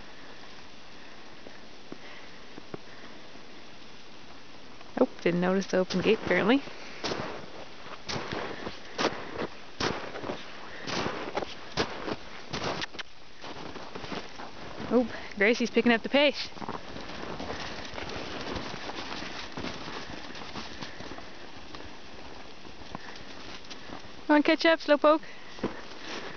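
Horses gallop across snow with muffled hoofbeats.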